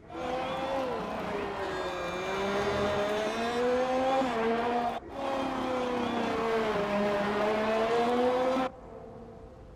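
A racing car engine whines at high revs, rising and falling in pitch.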